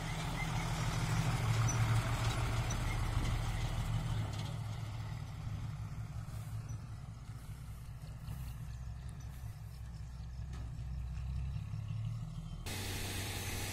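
A truck engine rumbles close by and fades as the truck drives away.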